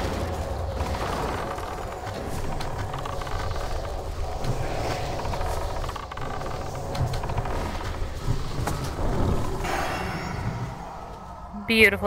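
Battle sounds of clashing weapons and spells crackle in a dense jumble.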